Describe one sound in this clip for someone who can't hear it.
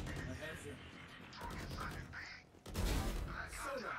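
A rifle fires a short burst of loud shots.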